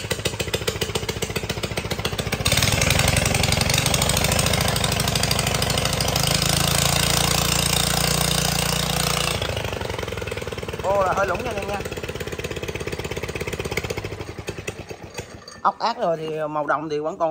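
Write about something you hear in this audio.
A small petrol engine idles with a rapid, steady putter.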